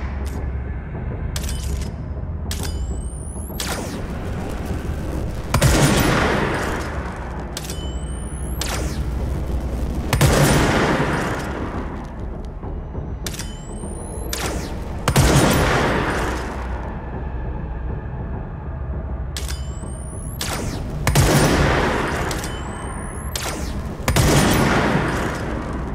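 Gunshots bang loudly, one at a time, echoing through a large hollow space.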